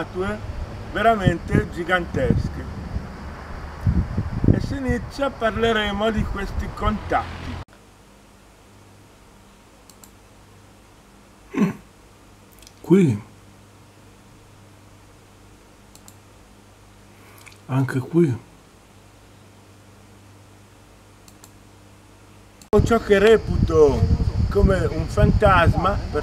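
A middle-aged man talks with animation close by, outdoors.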